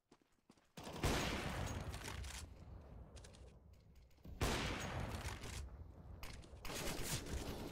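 A sniper rifle fires loud single shots that ring out and fade.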